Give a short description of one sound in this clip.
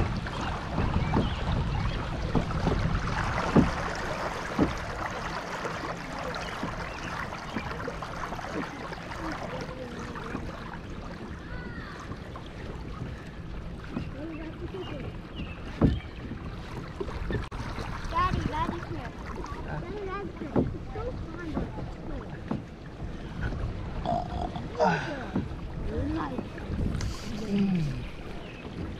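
Water laps gently against the side of a kayak.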